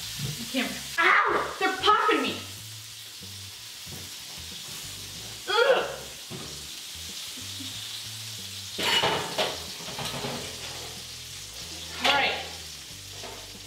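Utensils and pans clatter and knock now and then.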